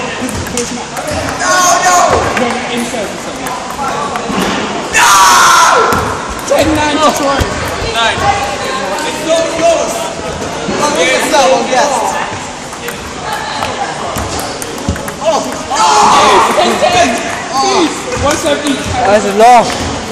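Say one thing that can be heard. Teenage boys chatter and call out in a large echoing hall.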